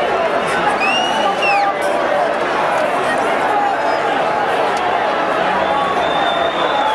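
A large stadium crowd sings and chants loudly outdoors.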